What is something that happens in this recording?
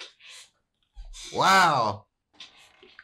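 A young man exclaims loudly in short bursts.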